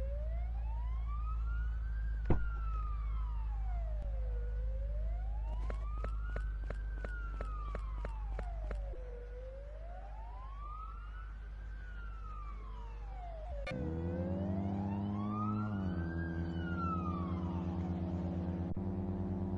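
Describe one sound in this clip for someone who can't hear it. A police siren wails, rising and falling steadily.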